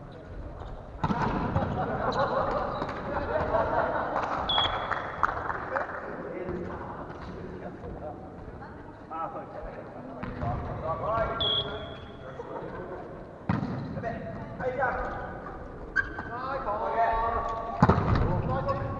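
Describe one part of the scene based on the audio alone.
A volleyball is struck with sharp slaps that echo in a large hall.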